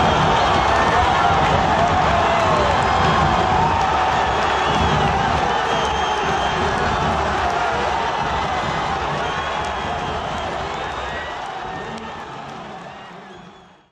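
A huge stadium crowd roars and chants loudly, slowly fading away.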